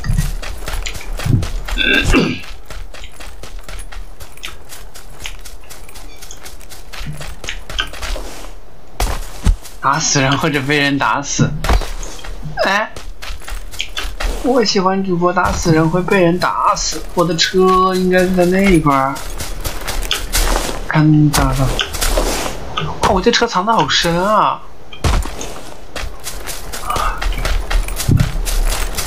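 Footsteps crunch quickly through dry grass.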